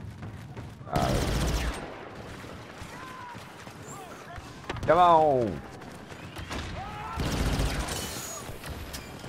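A blaster rifle fires sharp shots.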